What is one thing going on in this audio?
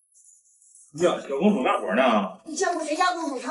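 A middle-aged man speaks in surprise, close by.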